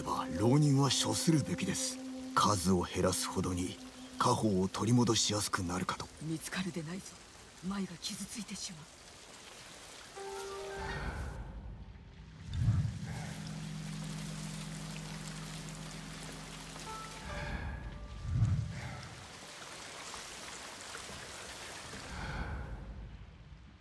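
Wind blows through tall grass.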